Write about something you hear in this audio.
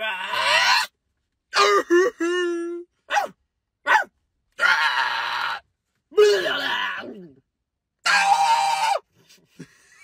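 A young man makes silly vocal noises in short bursts, close by.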